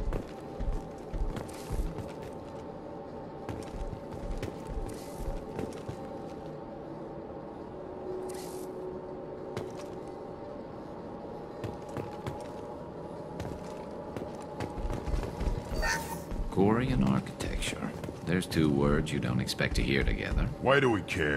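Heavy boots thud on a hard floor.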